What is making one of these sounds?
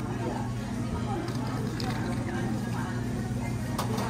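Coffee pours into a glass of ice.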